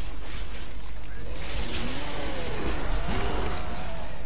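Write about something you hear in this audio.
Electric magic crackles and buzzes.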